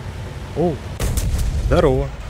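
A shell explodes with a heavy boom on a tank's armour.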